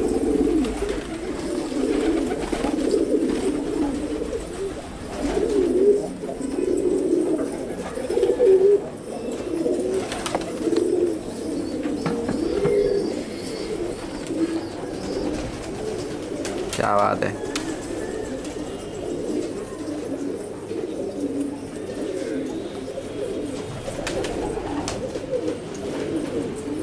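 Many pigeons coo in low, rolling burbles throughout.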